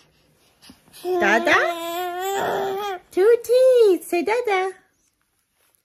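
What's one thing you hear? A baby laughs and squeals happily.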